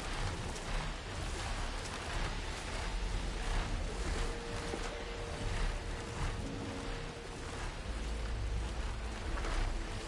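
Great mechanical wings beat with a steady whoosh.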